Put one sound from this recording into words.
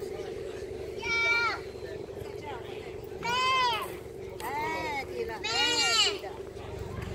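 Seagulls cry loudly nearby.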